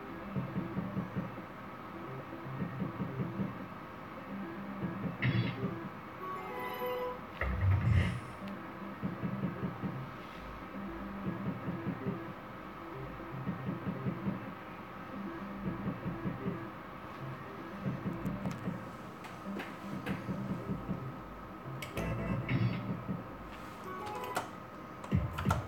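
A slot machine plays a repeating electronic tune as its reels spin.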